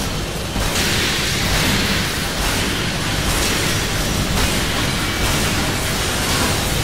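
Swords clash and slash with sharp metallic hits.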